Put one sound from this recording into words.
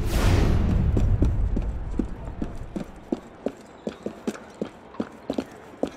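Quick footsteps run across a tiled roof.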